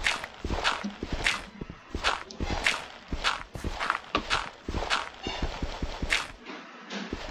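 Dirt crunches in quick, repeated scrapes as it is dug.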